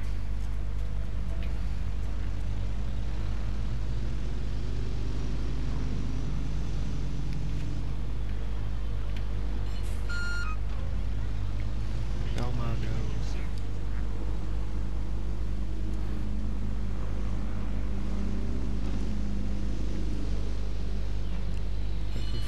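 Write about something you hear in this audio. A bus engine rumbles steadily as a bus drives along a street.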